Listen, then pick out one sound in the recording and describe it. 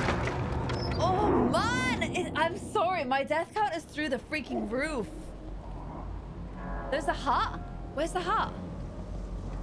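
A young woman talks and exclaims with animation into a microphone.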